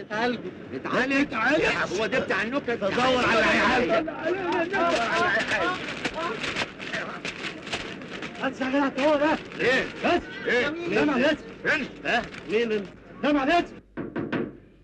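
Several men shout and argue loudly over each other.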